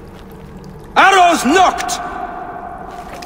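A man shouts a command loudly and close by.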